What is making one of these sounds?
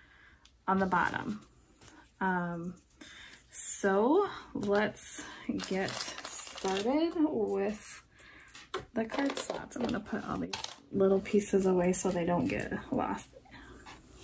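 A woman talks calmly and close by, with pauses.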